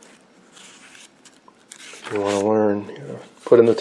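Paper pages rustle and crinkle as they are turned.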